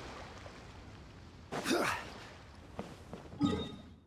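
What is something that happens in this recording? Footsteps run across wooden boards.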